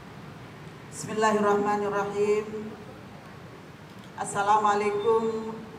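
A woman speaks calmly into a microphone over loudspeakers in an echoing hall.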